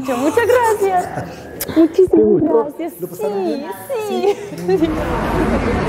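A woman talks close by with excitement.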